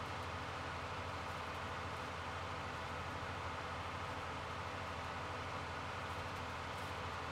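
A hay tedder whirs as it turns the grass.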